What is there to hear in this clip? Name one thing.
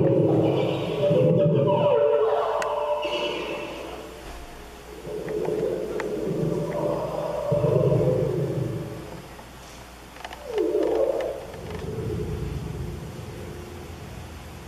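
Synthesized electronic tones play through a loudspeaker, sliding and swelling in pitch.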